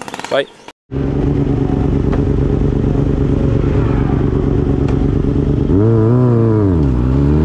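A motorcycle engine idles with a deep, steady rumble close by.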